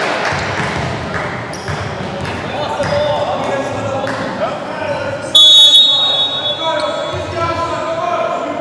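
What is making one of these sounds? A volleyball is struck with a thud.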